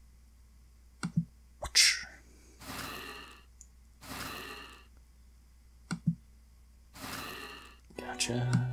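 A sword swooshes and strikes in a fight.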